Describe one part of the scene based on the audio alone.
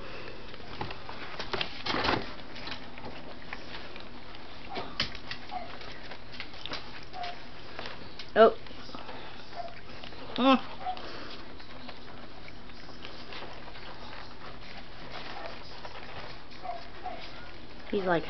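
Scottish terrier puppies crunch raw carrot slices from bowls.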